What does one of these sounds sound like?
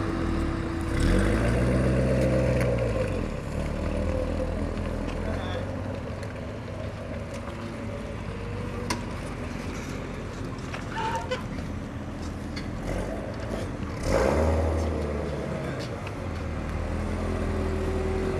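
A sports car pulls away with a deep growl.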